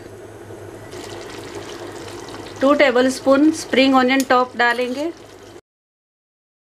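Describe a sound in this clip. Sauce simmers and sizzles softly in a pan.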